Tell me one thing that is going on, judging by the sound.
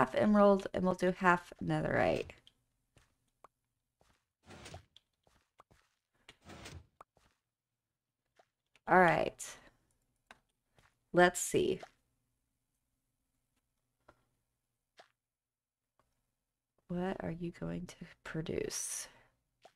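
A young woman talks casually into a microphone, in short bursts.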